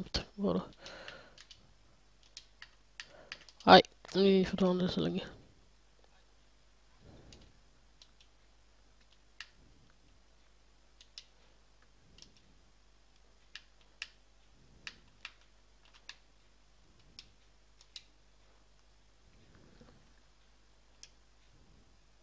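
Short interface clicks sound as a game menu is moved through.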